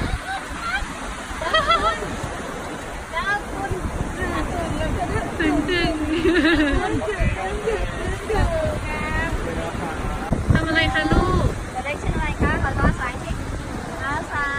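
Waves wash onto the shore.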